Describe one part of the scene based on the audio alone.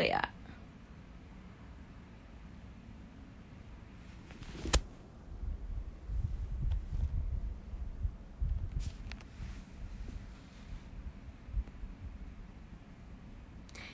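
A young woman speaks softly and close to a phone microphone.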